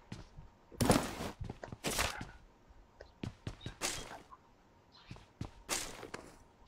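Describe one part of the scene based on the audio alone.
Gunshots crack in short, quick bursts.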